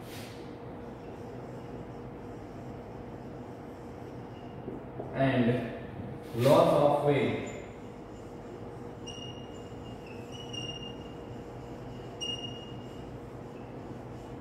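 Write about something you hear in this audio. A marker squeaks in short bursts on a whiteboard.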